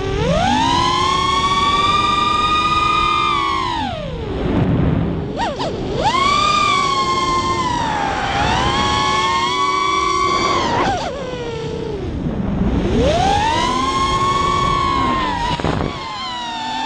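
A small drone's motors whine loudly, rising and falling in pitch as it speeds up and slows down.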